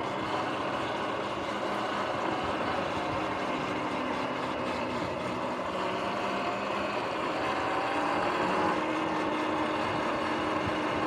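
An electric bike's motor whirs steadily.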